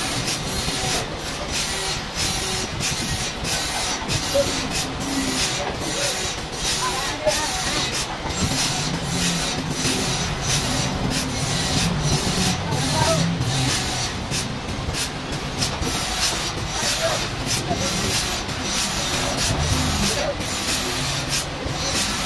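Machinery clatters and knocks.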